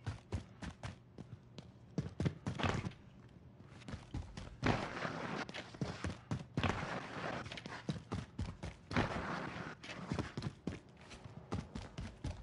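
Footsteps thud quickly up wooden stairs.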